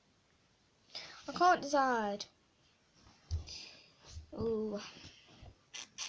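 A young girl speaks close by, with animation.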